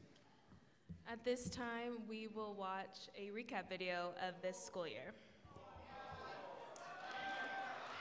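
A woman speaks into a microphone over loudspeakers, addressing an audience.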